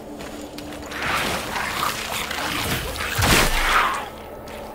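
A shallow stream trickles and splashes close by.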